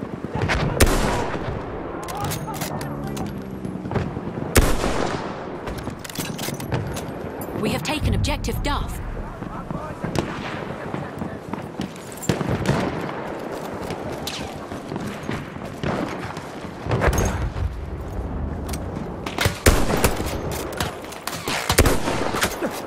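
Rifle shots crack sharply, one at a time.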